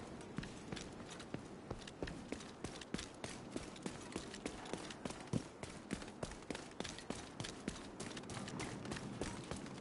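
Heavy boots run at a steady pace over hard ground.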